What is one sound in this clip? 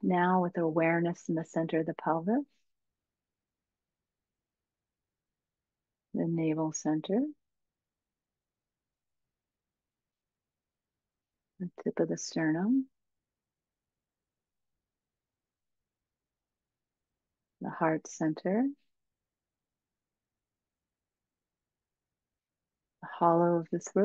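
A woman speaks calmly through a microphone in short phrases, with long silent pauses between them.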